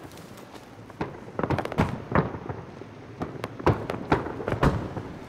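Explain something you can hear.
Footsteps crunch on snow.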